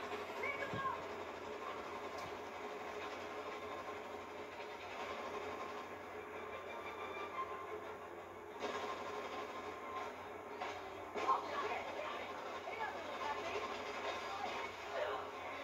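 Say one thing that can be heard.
Explosions boom from a television speaker.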